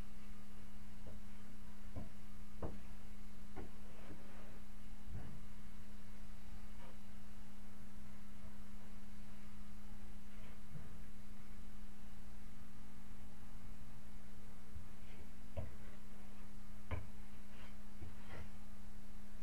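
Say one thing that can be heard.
Tools knock and tap now and then, nearby indoors.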